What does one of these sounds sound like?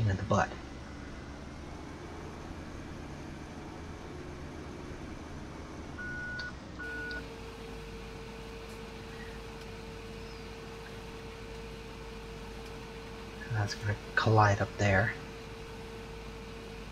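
A tractor engine hums steadily from inside the cab.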